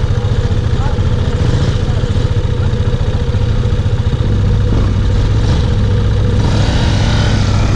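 A motorcycle engine idles up close with a rough, throbbing rumble.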